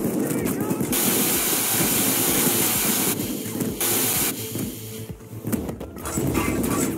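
A power saw grinds loudly through metal with a harsh hiss.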